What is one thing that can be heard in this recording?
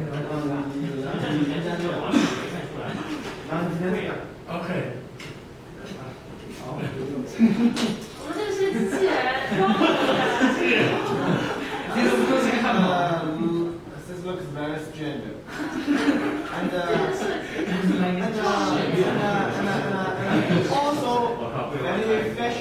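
A man speaks to a group in a large echoing hall, heard through a microphone.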